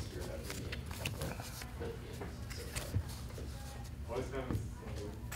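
Playing cards tap and slide on a table mat.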